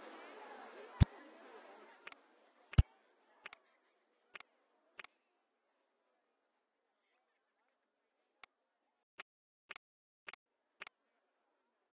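Soft menu clicks sound one after another.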